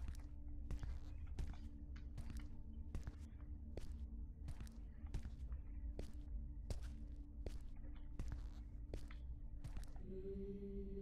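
Footsteps thud steadily.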